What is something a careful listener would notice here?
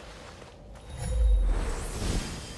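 A magical shield bursts on with a deep whoosh.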